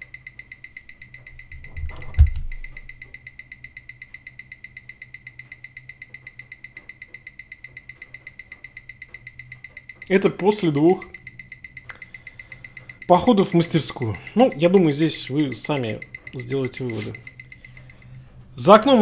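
A watch ticks rapidly and steadily.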